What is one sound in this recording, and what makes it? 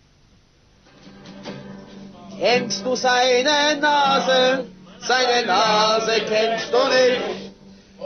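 A group of men sing loudly together.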